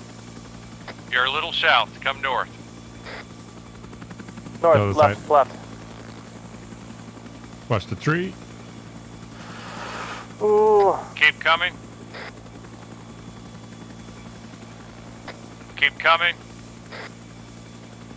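A helicopter's rotor thumps and its engine drones steadily overhead.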